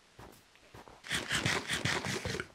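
Loud, rapid crunching of eating.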